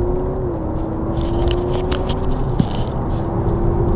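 A clip-on microphone rustles and scrapes as it is handled.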